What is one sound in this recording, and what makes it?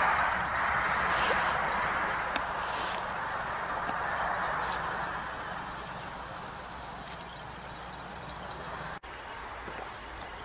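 A jet airliner rumbles faintly far overhead.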